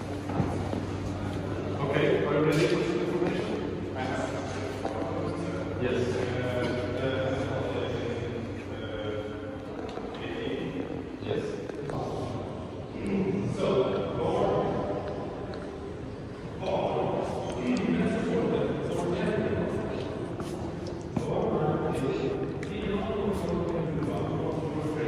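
A man's voice rings out, echoing through a large hall.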